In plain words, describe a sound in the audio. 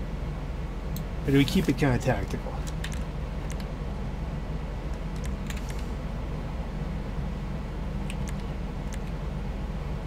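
A menu selection clicks softly several times.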